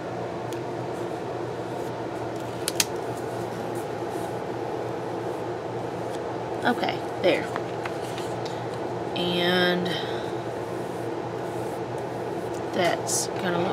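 Fingers rub and press stickers onto a paper page.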